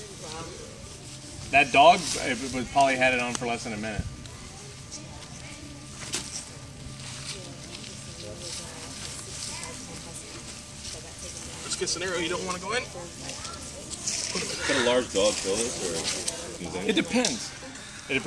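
A cloth sack rustles as it is handled and dragged over dry leaves.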